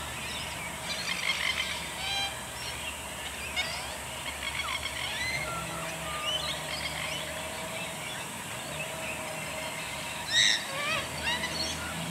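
Birds call and chatter from the treetops.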